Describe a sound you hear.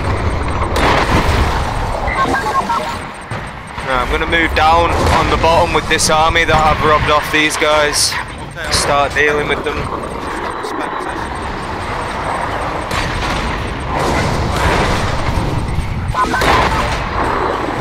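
Energy weapons zap and crackle repeatedly.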